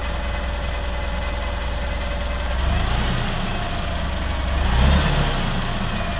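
A forklift engine idles with a low rumble.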